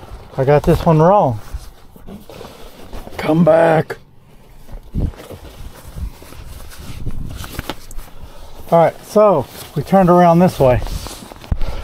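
Padded fabric rustles and crinkles as hands handle it.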